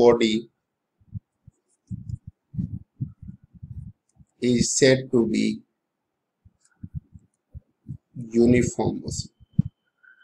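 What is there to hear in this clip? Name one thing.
A pen scratches on a writing surface.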